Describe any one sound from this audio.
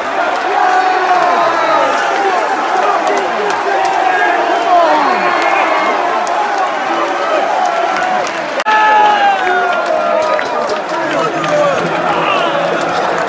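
A large crowd of men sings and chants loudly in a big open stadium.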